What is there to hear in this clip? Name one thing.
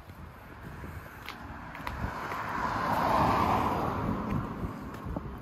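A car approaches along the road and passes by.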